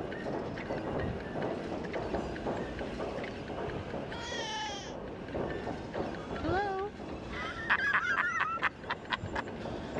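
A ride car rumbles and clatters along a track.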